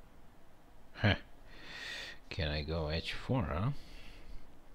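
A middle-aged man speaks briefly and calmly into a close microphone.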